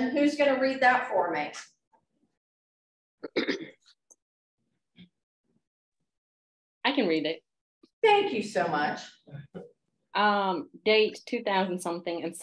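A young woman speaks calmly through an online call, in short bursts with pauses.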